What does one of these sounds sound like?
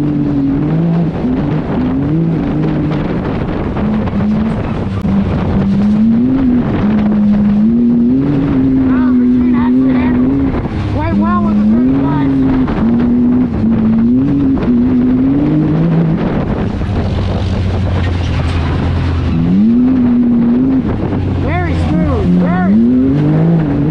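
An off-road vehicle's engine drones close by, its pitch rising and falling as it speeds up and slows down.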